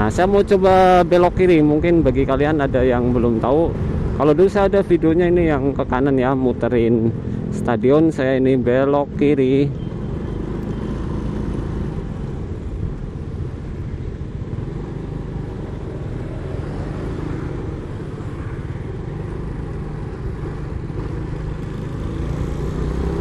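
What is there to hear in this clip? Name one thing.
A motorcycle engine hums steadily as the bike rides along a road.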